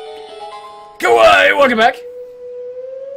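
A wolf howls loudly.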